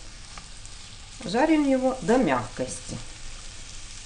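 A spatula scrapes and stirs onions in a frying pan.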